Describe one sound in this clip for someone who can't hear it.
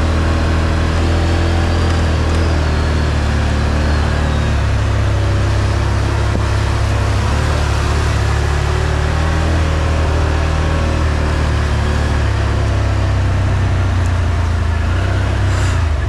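A second off-road vehicle engine drones just ahead.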